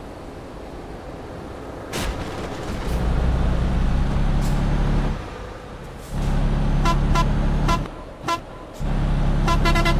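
A diesel bus engine drones as the bus drives along a road.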